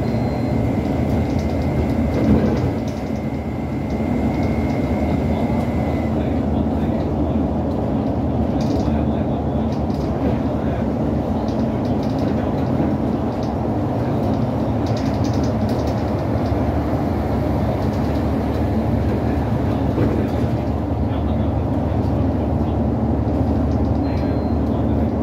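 Tyres roar on the road at speed.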